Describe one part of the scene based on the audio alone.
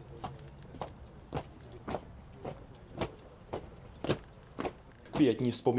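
Boots step in a slow, even marching rhythm on grass.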